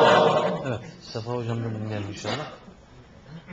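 A man sings slowly into a microphone, heard through a loudspeaker in an echoing room.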